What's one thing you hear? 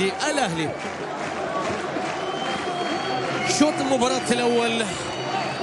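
A large crowd murmurs and chants steadily in an open stadium.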